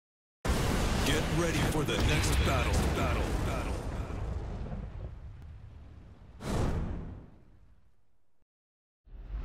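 Flames roar and whoosh loudly, then die away.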